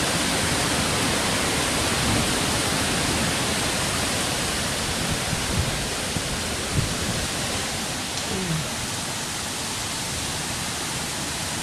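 Wind buffets the microphone with low rumbling gusts.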